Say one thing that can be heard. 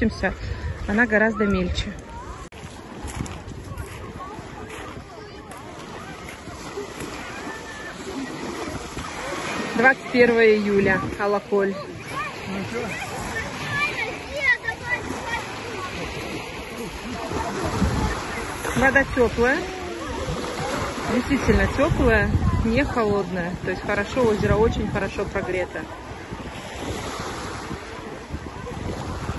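Small waves wash gently onto a pebble shore.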